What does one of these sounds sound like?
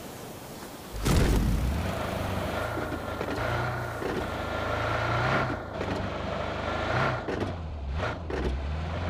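A car engine rumbles steadily as the car drives.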